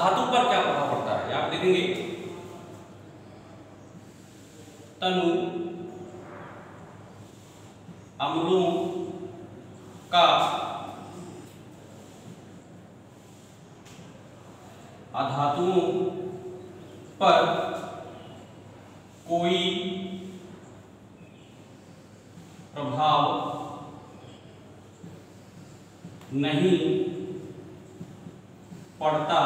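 A middle-aged man speaks calmly in short phrases in an echoing room.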